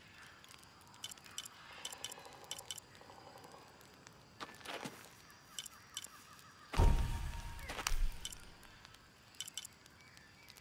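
Soft menu clicks tick as a selection moves from item to item.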